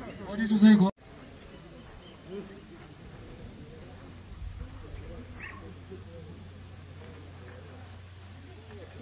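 A crowd chatters faintly outdoors.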